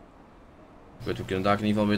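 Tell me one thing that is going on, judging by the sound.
A young man speaks loudly close to a microphone.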